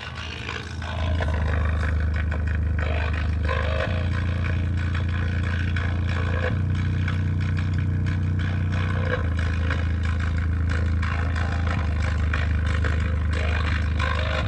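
A loudspeaker plays a loud, deep hum that shifts pitch in steps.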